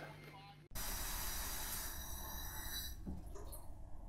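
Water pours from a tap into a bath.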